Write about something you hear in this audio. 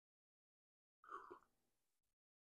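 A man sips a drink quietly.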